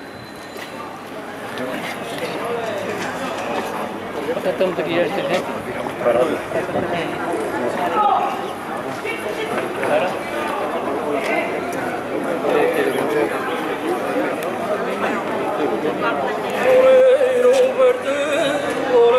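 A choir of older men sings together outdoors.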